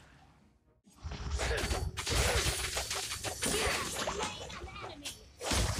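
Game spell effects blast and crackle in quick bursts.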